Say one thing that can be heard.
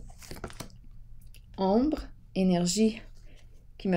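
A card is laid down on a wooden table.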